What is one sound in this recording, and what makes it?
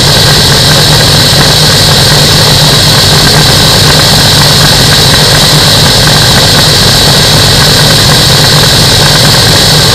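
Wind roars past steadily.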